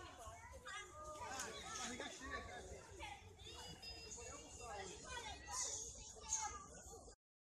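Young children chatter and squeal excitedly outdoors.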